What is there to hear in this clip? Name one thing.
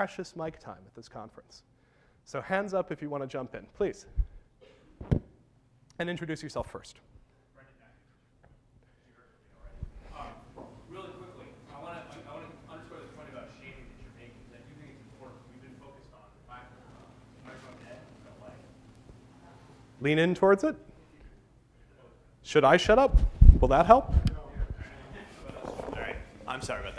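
A middle-aged man speaks with animation into a clip-on microphone.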